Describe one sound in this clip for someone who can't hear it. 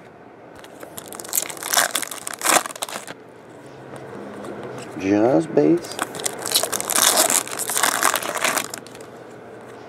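Foil wrappers crinkle and tear as they are torn open.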